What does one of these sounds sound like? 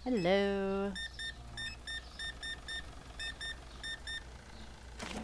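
A checkout scanner beeps in quick short bursts.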